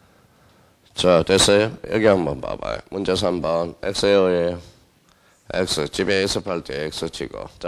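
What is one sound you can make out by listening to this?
A man speaks with animation through a microphone, loud and close.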